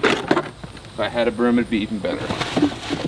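Loose dirt and gravel rattle into a plastic bin.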